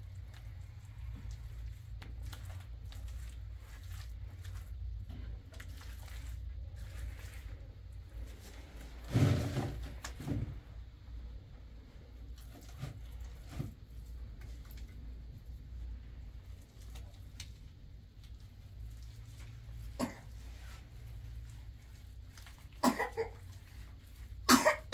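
A hand smears wet plaster against a wall with soft scraping.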